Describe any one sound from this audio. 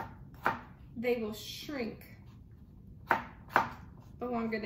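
A knife chops on a cutting board with sharp taps.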